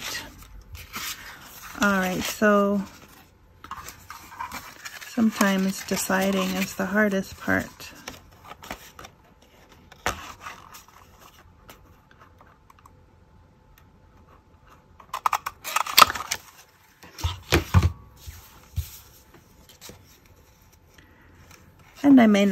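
Stiff paper rustles as it is handled.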